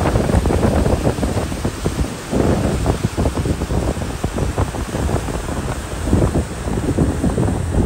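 A flag flaps in the wind.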